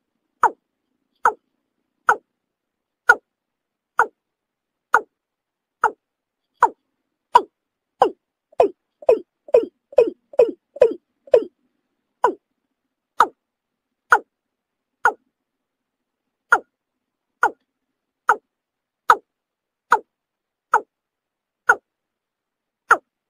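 A bird calls with short, sharp notes repeated at a steady pace, briefly quickening into a rapid run.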